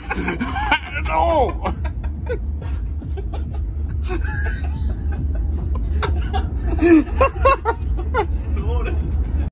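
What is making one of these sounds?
A drift car's engine roars, heard from inside the cabin.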